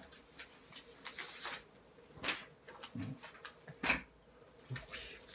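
Paper rustles and crinkles as a sheet is handled.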